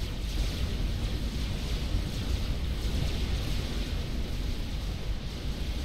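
Many distant explosions and weapon blasts rumble steadily.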